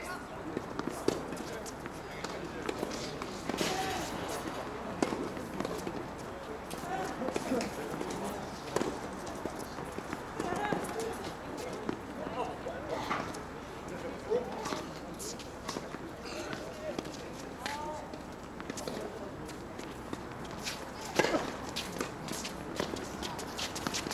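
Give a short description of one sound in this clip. A tennis ball is hit back and forth with sharp pops.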